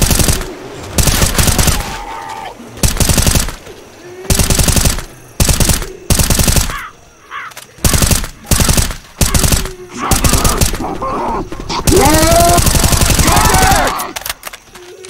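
A rifle fires loud, rapid bursts of shots.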